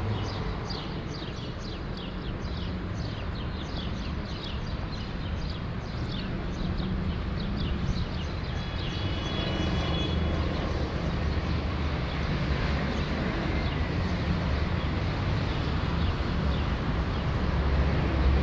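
City traffic rumbles in the distance and grows louder.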